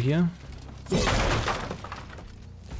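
A wooden pallet slams down with a loud crash.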